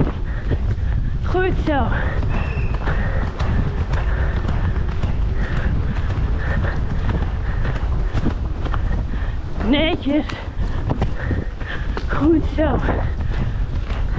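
A horse's hooves thud steadily on soft forest ground.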